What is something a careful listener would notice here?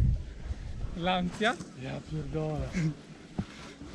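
Young men shout and call out excitedly outdoors.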